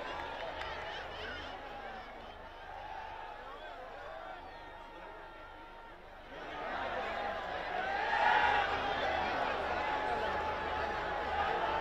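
A large crowd cheers and chants outdoors, swelling louder partway through.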